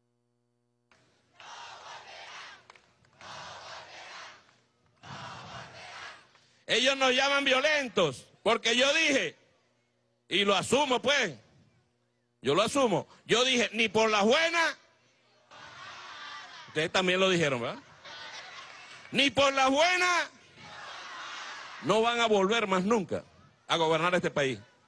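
A large crowd cheers and shouts outdoors.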